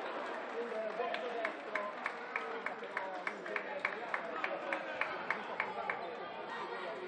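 Spectators clap in a steady rhythm.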